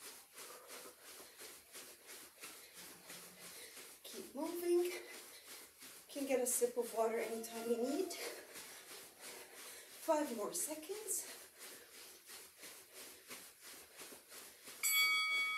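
Feet thump lightly and rapidly on a carpeted floor.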